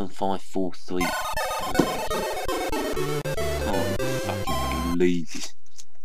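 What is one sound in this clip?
A Commodore 64 sound chip plays a short electronic tune.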